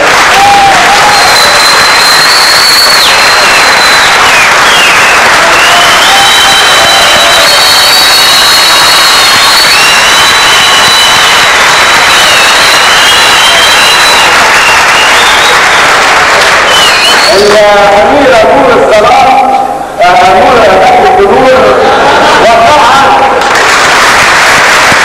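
A crowd claps loudly and steadily in a large hall.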